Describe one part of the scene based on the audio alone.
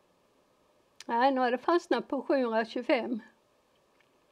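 An older woman speaks briefly and calmly into a close microphone.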